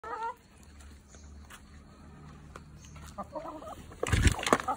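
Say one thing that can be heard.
Hens cluck softly close by.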